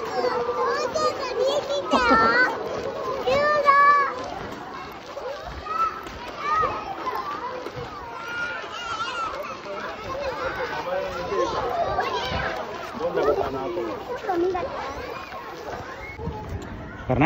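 Children shout and chatter nearby outdoors.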